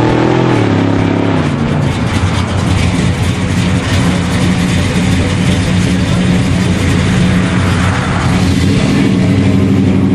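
A loud car engine idles with a deep, rough rumble, dropping in pitch at first.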